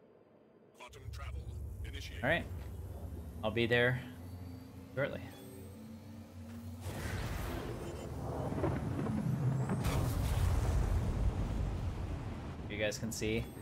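A spaceship engine hums with a low, steady drone.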